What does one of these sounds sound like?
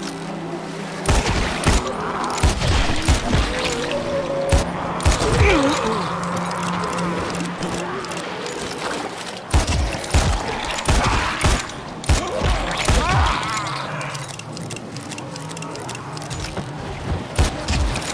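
Zombies groan and snarl nearby.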